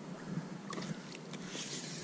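A small fish splashes and flaps at the water's surface.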